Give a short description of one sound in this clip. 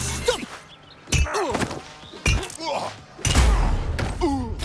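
A heavy wrench strikes a man with loud thuds.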